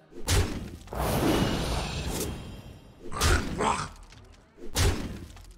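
Digital game sound effects whoosh and chime in short bursts.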